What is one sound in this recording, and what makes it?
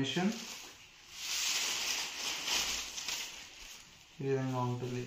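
Silk fabric rustles as it is unfolded.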